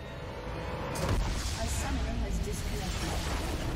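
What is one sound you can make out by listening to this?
A huge explosion booms with a deep rumble.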